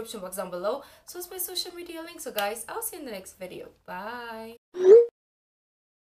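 A young woman talks cheerfully and close to a microphone.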